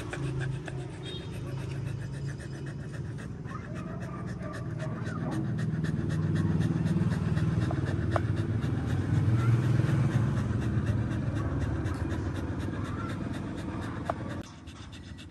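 A dog pants rapidly close by.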